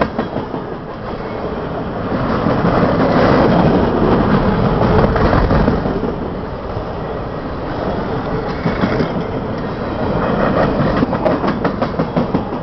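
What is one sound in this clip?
Freight cars rumble and roar past close by on the rails.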